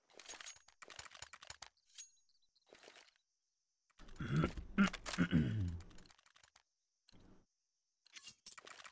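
Footsteps tread quickly on stone.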